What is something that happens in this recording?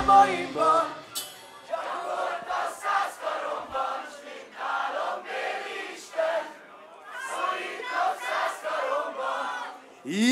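A large crowd cheers and shouts in a loud, echoing room.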